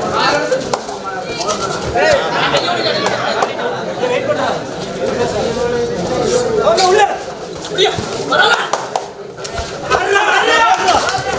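A crowd shouts and cheers.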